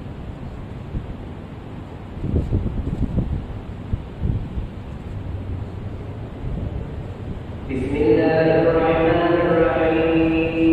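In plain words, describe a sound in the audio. Wall fans whir steadily.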